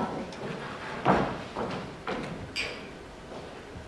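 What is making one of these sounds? A man speaks on a stage, heard from the back of a large hall.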